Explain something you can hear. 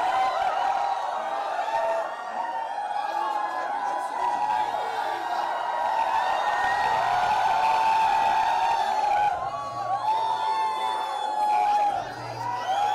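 A dense crowd chatters and calls out.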